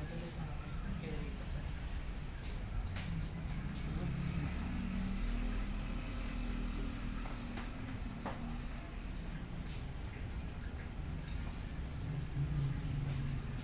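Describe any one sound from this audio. A straight razor scrapes through lathered stubble in short strokes.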